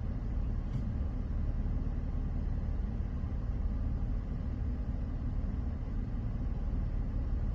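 A vehicle's engine rumbles low, heard from inside the vehicle.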